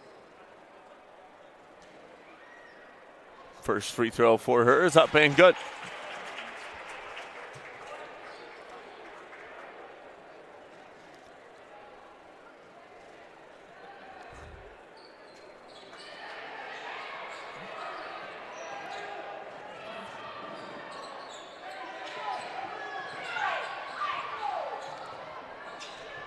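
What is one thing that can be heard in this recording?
A crowd in a large echoing gym murmurs and chatters.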